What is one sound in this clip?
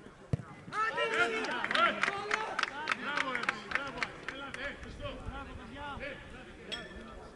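Young men shout and cheer outdoors at a distance.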